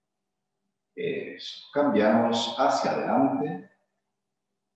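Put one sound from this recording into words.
A man speaks calmly, heard through a microphone on an online call.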